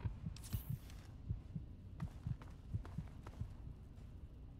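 Footsteps tread on a hard metal floor.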